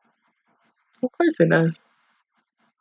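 A young woman gives a short laugh close to the microphone.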